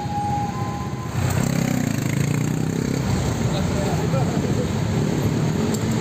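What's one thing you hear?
Traffic roars steadily on a road.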